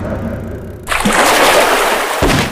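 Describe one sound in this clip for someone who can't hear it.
Water splashes loudly as a large fish leaps out.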